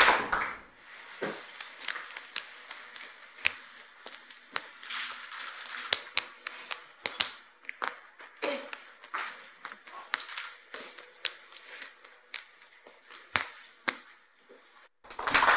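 Juggling balls slap softly into a man's hands in quick succession.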